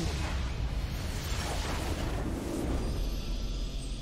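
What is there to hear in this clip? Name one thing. A deep video game explosion booms and rumbles.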